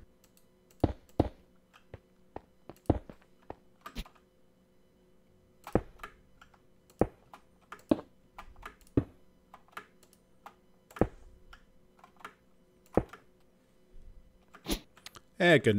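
Blocks knock softly as they are placed and broken, one after another.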